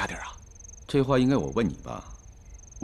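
A middle-aged man answers.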